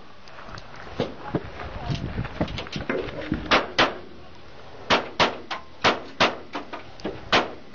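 Gunshots crack nearby in quick bursts.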